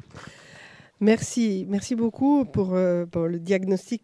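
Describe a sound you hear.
A woman speaks into a microphone in a steady voice.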